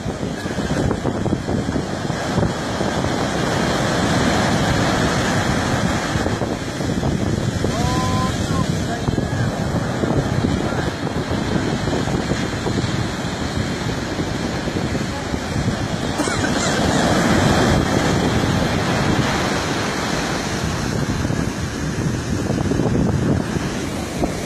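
Wind blows hard across the microphone.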